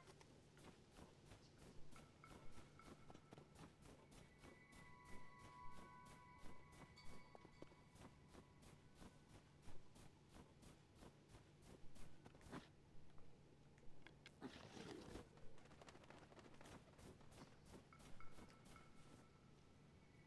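Footsteps crunch on snow at a steady pace.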